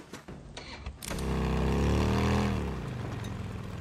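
A motorcycle engine starts and revs up.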